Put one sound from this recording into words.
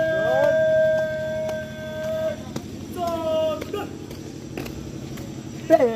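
A young man sings loud, drawn-out notes.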